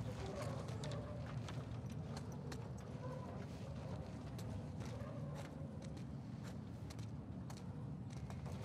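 The small wheels of a heavy cart rumble and rattle across a hard floor.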